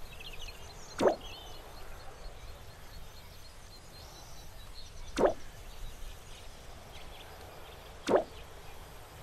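Soft tapping clicks sound now and then.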